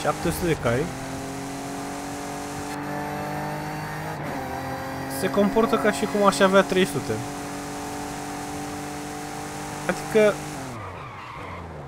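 A car engine roars steadily at high speed.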